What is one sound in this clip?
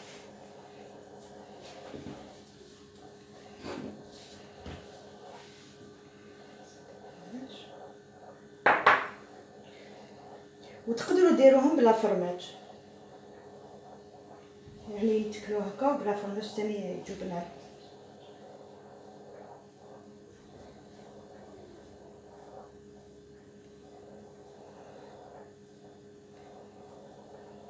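Hands press and fold soft dough on a wooden table.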